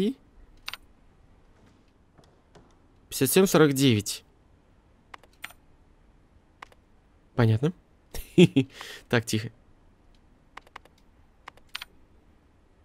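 Short electronic clicks sound now and then.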